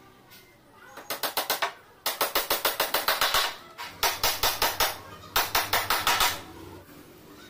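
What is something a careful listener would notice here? A hammer drives nails into wood with rapid, sharp taps.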